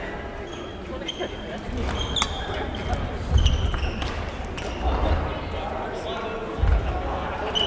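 Footsteps thud on a wooden floor in a large echoing hall.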